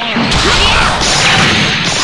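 An energy blast fires with a roaring whoosh.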